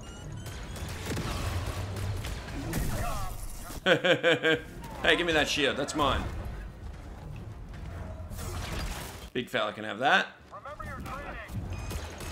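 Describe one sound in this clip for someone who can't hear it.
A lightsaber hums and whooshes as it swings.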